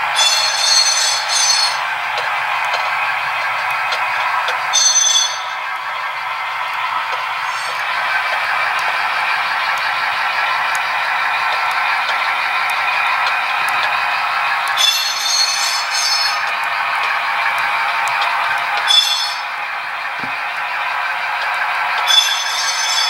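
Model train cars roll along the track with a steady whirring rattle.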